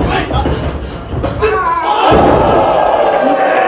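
A wrestler's body thuds onto the ring mat.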